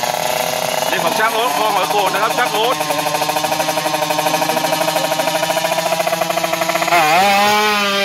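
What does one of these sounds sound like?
A motorcycle engine revs close by.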